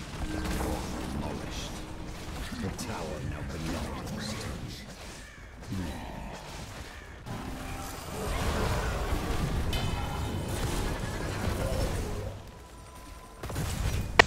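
Game spell effects and weapon blows clash in a noisy battle.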